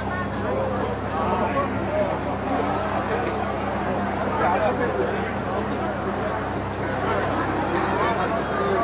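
A large crowd chatters outdoors, many voices blending together.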